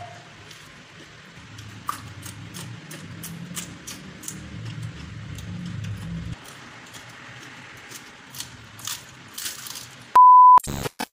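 A woman crunches and chews food close to the microphone.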